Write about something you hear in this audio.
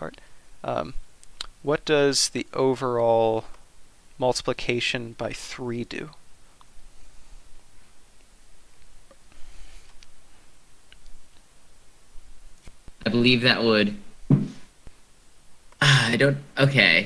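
A young man speaks calmly into a close microphone, explaining.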